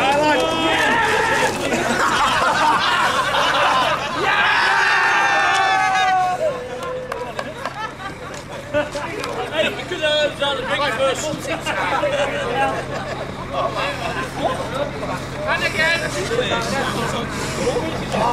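A crowd of men and women talk and shout loudly nearby.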